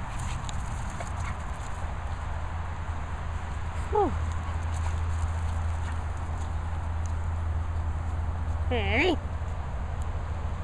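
A dog runs across the grass with soft, quick pawsteps.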